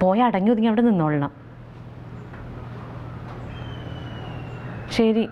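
A woman speaks calmly into a phone close by.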